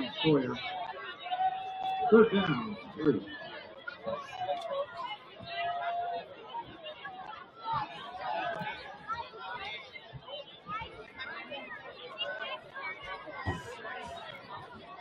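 A crowd of spectators cheers and shouts in a stadium outdoors.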